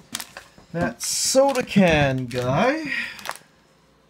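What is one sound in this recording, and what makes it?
Plastic candy wrappers crinkle as hands handle them.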